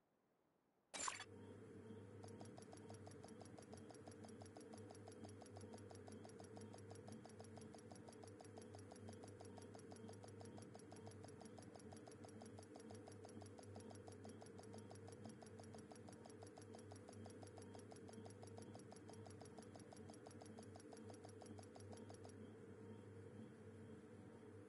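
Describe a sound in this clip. A low electronic drone hums steadily.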